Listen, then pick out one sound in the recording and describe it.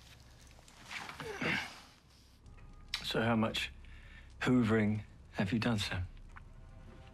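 A man speaks quietly and with emotion, close by.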